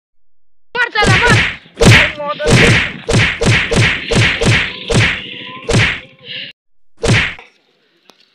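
Blows land on a body with sharp thuds.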